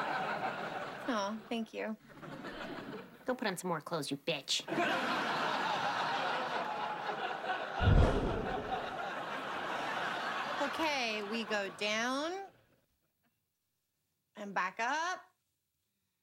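Two young women talk with animation, close by.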